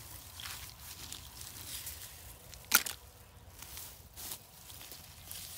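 A hand rustles through dry grass.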